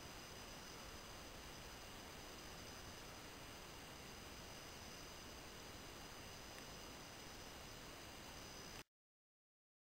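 Dry grass rustles under a man's hands.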